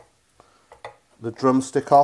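A knife cuts through meat and taps on a wooden board.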